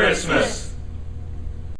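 A group of men and women shout together close by.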